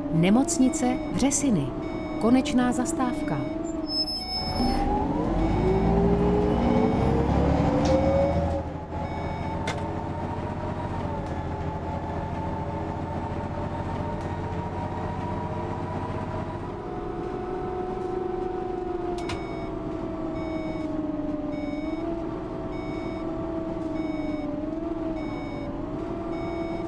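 A bus engine hums steadily and changes pitch as the bus drives.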